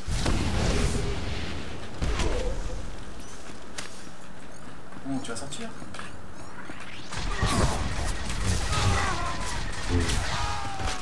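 Lightsabers hum and clash with sharp electric strikes.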